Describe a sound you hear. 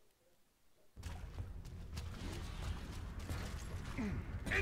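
Loud rumbling action sounds with sharp clicks and bangs burst in suddenly.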